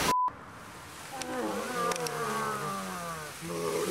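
Dry leaves rustle and crunch.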